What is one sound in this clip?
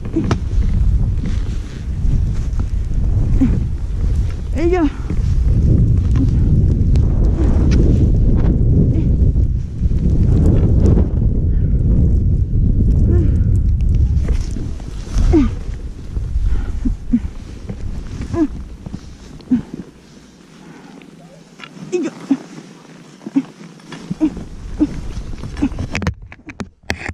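Skis hiss and swish through deep snow.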